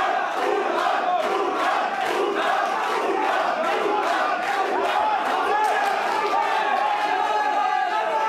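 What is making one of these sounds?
Gloved punches and kicks thud against bodies.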